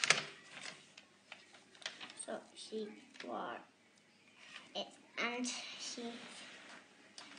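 Paper pages rustle.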